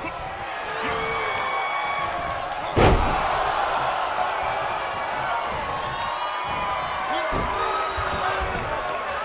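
A large crowd cheers and shouts steadily in a big arena.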